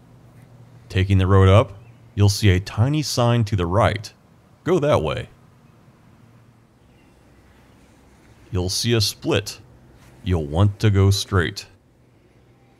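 A man speaks calmly close by, narrating.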